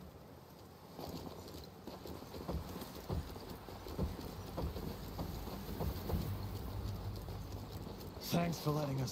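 Footsteps crunch on gravel at a steady pace.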